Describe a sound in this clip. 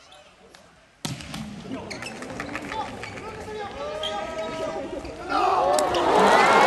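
A large crowd cheers and chants in an echoing arena, swelling to a roar near the end.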